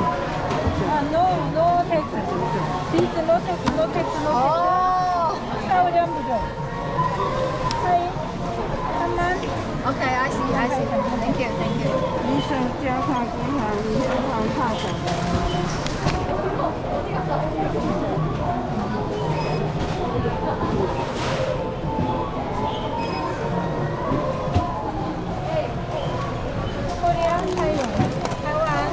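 Women talk nearby in a lively way.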